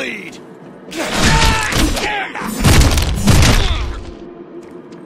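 Blades slash and clang in a close fight.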